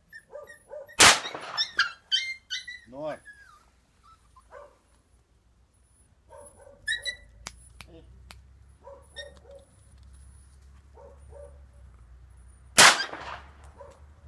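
A pistol fires single shots outdoors, each with a sharp crack and a short echo.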